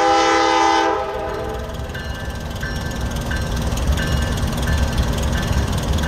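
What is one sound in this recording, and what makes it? A diesel locomotive rumbles past.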